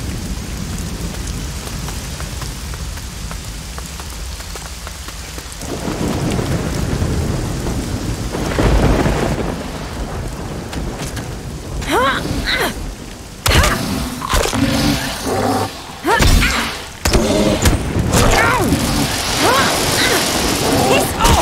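Heavy rain falls outdoors.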